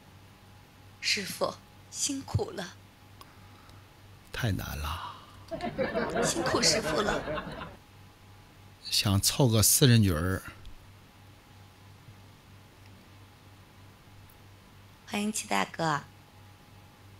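A young woman speaks softly into a microphone over an online call.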